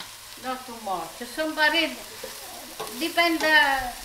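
A wooden spoon scrapes and stirs food in a pan.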